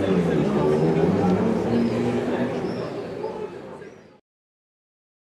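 A crowd of young people chatters nearby outdoors, then fades out.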